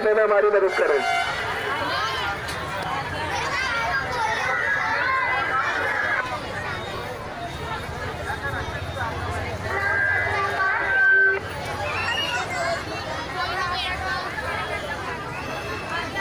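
A large crowd shouts and murmurs with many overlapping voices.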